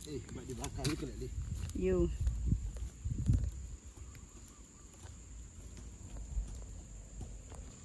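A wood fire crackles and hisses.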